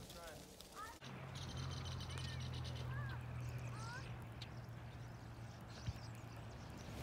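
Blackbirds chirp and call outdoors.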